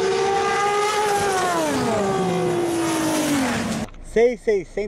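A race car engine roars loudly at high revs and winds down.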